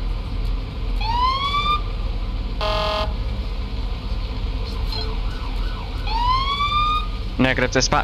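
A police siren gives short rising whoops.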